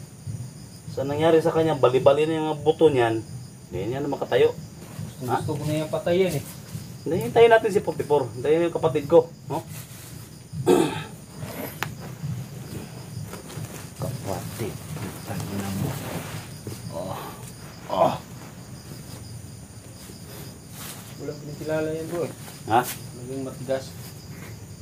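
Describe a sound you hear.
A man speaks loudly and forcefully close by.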